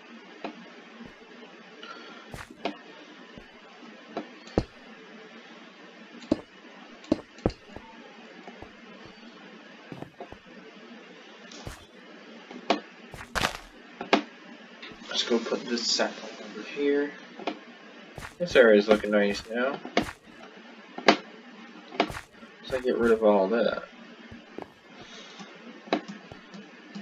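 Stone blocks thud softly as they are placed one after another.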